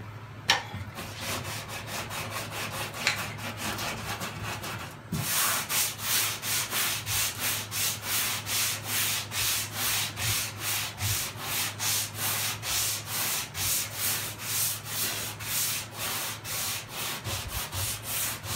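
Sandpaper rasps back and forth over metal in quick, even strokes.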